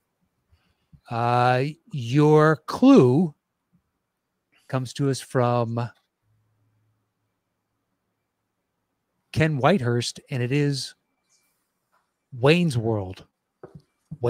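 A man talks with animation into a close microphone over an online call.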